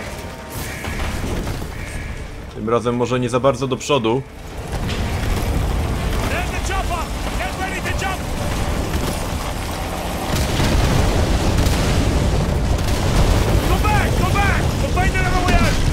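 Rapid gunfire rattles and echoes.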